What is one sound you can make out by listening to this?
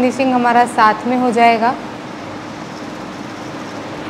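A sewing machine whirs.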